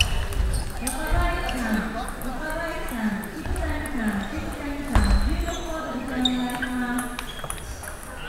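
A young man talks loudly nearby in an echoing hall.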